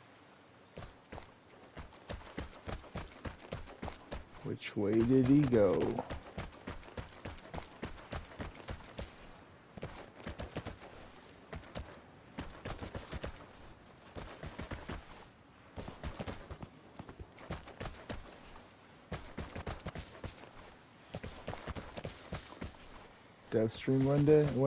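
Footsteps patter quickly across gravel and wooden boards.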